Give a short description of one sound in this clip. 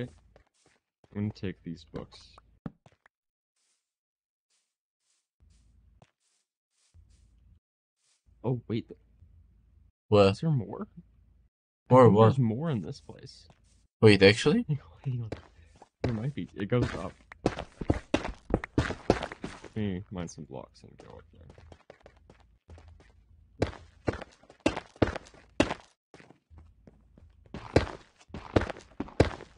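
Footsteps tread quickly over ground and stone.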